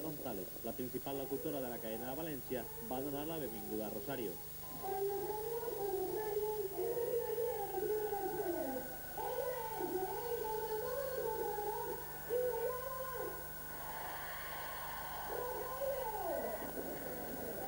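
An electric guitar plays along.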